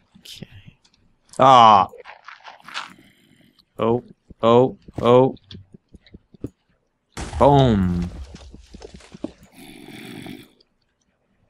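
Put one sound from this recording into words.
Dirt and stone crunch as a pickaxe digs at them.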